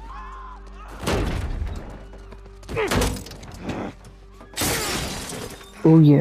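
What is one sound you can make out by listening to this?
Glass cracks and shatters with sharp crashes.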